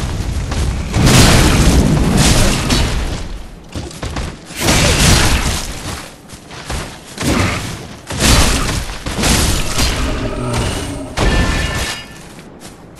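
Sword strikes clang and slash in a fight.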